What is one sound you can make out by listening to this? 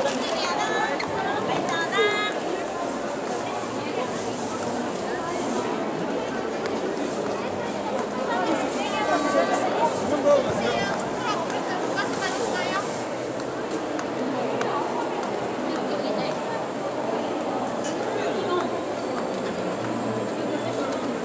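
A crowd murmurs and chatters all around.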